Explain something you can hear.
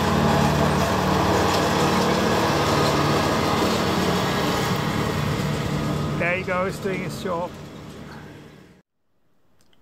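A ride-on mower engine runs as the mower cuts grass.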